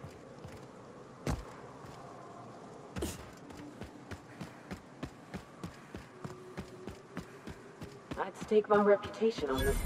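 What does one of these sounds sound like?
Footsteps tread steadily over rough ground.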